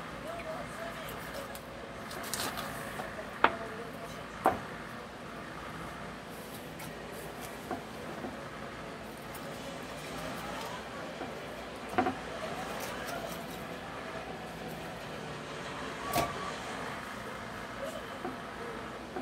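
A knife cuts through raw chicken on a cutting board.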